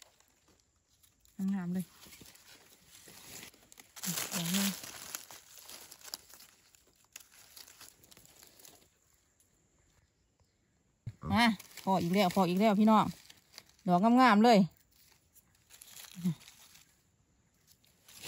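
A knife scrapes and cuts a soft mushroom stem.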